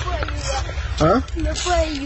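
A child speaks outdoors in wind.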